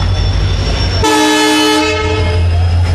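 A train horn blares loudly for a moment.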